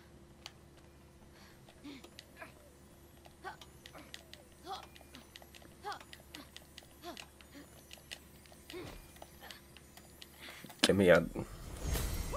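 Hands and feet knock and scrape while climbing in a steady rhythm.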